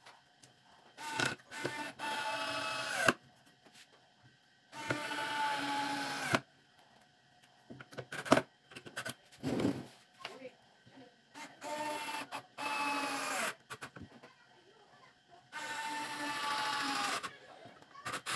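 A cordless drill whirs in short bursts, slowing as it winds down.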